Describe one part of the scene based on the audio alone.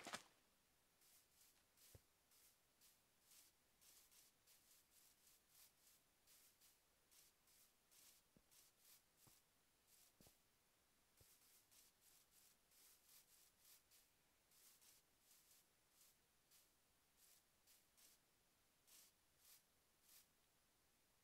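Footsteps crunch through grass at a steady walking pace.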